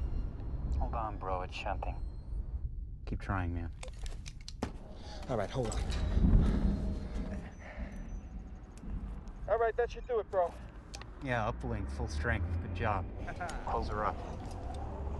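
A man speaks tensely into a crackling two-way radio, close by.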